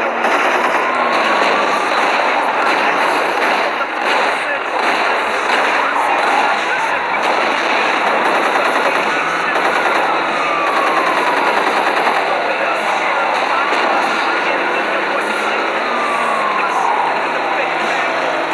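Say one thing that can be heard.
Police sirens wail and rise and fall in pitch.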